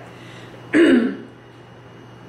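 A woman sips a hot drink.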